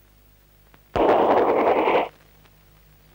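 A train rushes past with a loud rumble.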